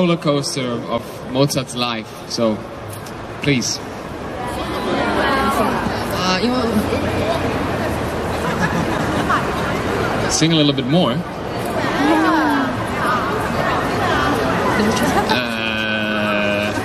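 A young man speaks calmly into a microphone over loudspeakers.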